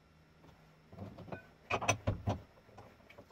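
Metal tools clink and clatter as they are handled.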